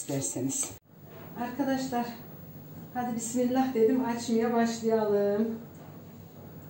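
An elderly woman speaks calmly, close by.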